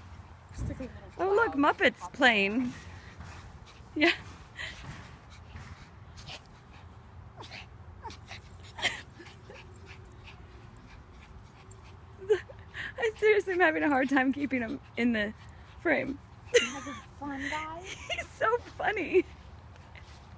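A woman talks brightly and with animation close by.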